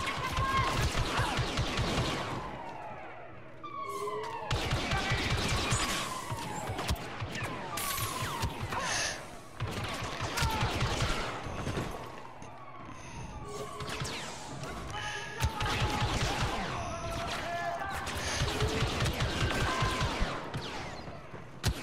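Blaster rifles fire in rapid, zapping bursts.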